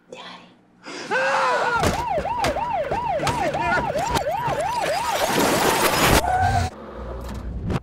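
A fire truck siren wails.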